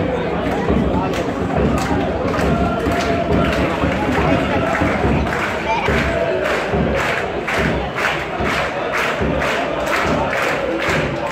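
Fans clap in a steady rhythm.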